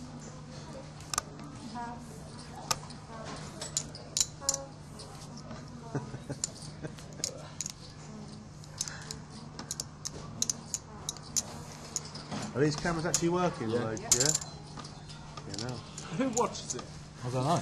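A dealer slides playing cards across a felt table.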